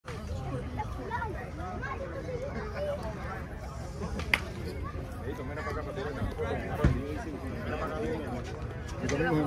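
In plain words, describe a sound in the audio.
A crowd of fans chatters and calls out nearby, outdoors.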